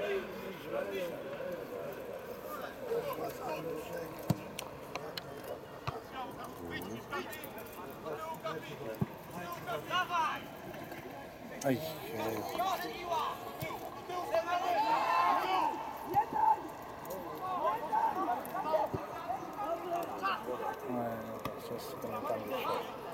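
Men on a field shout to each other, heard from a distance outdoors.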